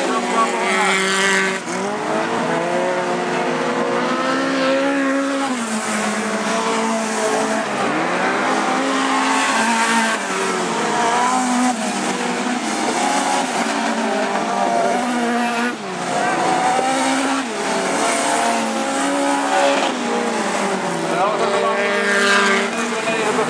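Racing car engines rev and roar loudly.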